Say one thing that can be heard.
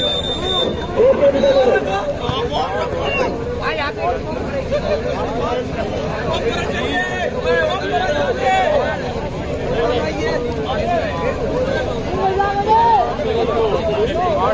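A man nearby shouts loudly.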